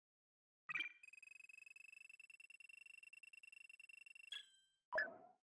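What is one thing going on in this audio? A score counter ticks upward with a steady electronic tone.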